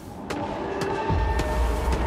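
A blade slashes through the air.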